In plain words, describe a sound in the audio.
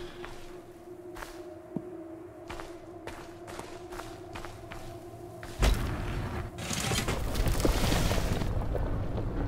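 Footsteps rustle through tall dry grass at a steady pace.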